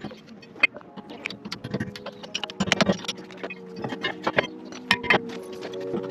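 A ratchet wrench clicks rapidly against a wheel bolt.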